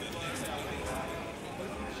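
A crowd chatters in a large room.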